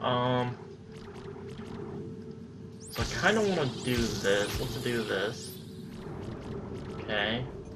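Electronic menu tones chime as options are selected.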